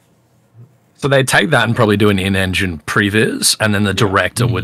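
A man talks animatedly into a microphone over an online call.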